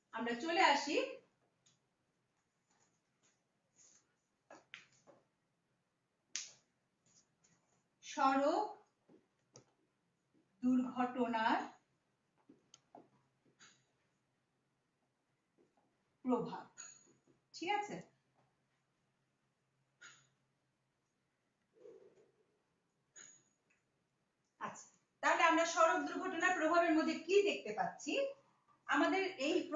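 A woman speaks calmly and clearly, close by, in short phrases with pauses.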